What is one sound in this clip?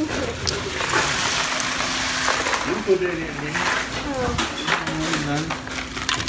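Ice and cans rattle and crunch as a hand digs through them.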